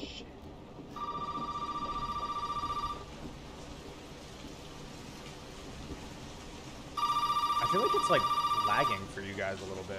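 A telephone rings loudly in short bursts.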